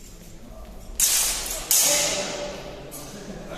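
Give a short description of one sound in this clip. Fencing blades clash and clatter.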